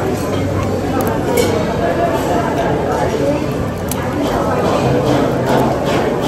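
Crab shells crack and snap between fingers.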